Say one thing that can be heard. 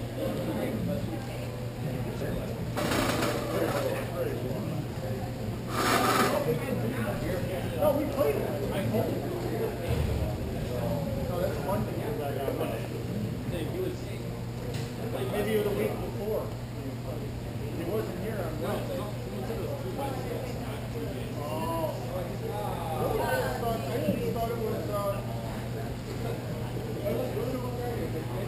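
A crowd of children and adults chatter and call out in a large echoing hall.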